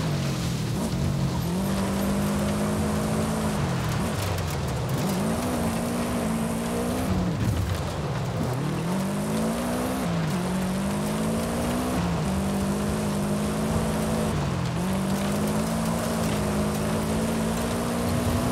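An engine revs hard and drops as gears shift.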